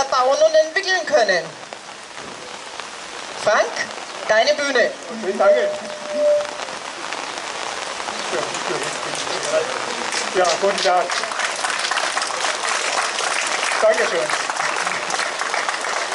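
Rain patters steadily on an umbrella.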